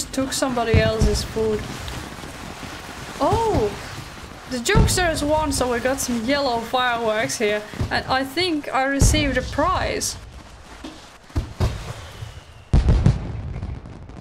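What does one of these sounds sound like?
Fireworks pop and crackle.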